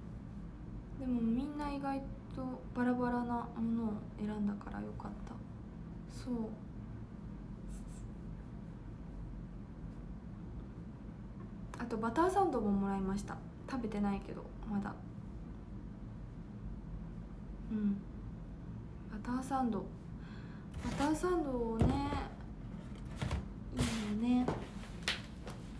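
A young woman speaks calmly close to the microphone, in short bursts with pauses.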